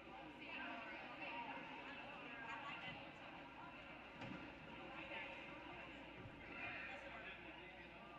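Footsteps tap across a wooden floor in a large echoing hall.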